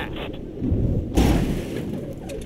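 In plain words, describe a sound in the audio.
A plane's wheels thump onto a road.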